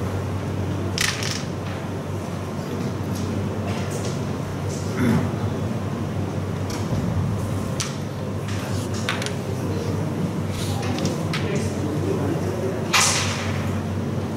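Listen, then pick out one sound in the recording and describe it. Carrom pieces click sharply as a striker hits them.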